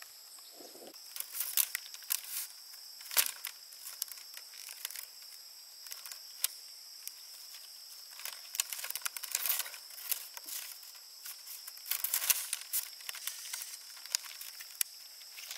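Dry bamboo strips rustle and click as they are woven together.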